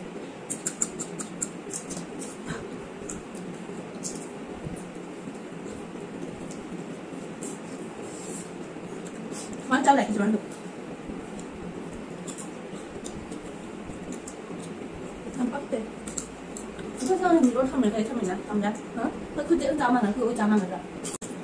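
Two young women chew crunchy food close by.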